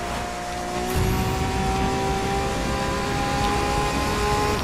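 Tyres screech as a car drifts around a corner.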